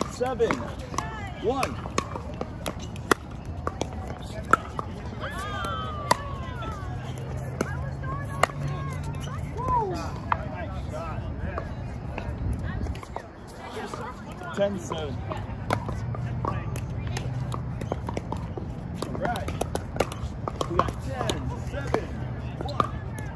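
Paddles strike a plastic pickleball outdoors with sharp pops.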